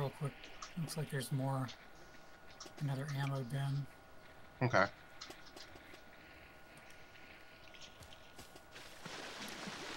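Footsteps rustle through tall dry grass.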